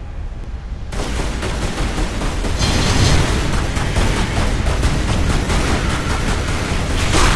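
Pistol shots fire rapidly, one after another.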